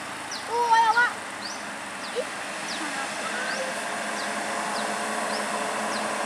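A heavy truck engine rumbles as the truck climbs toward the listener.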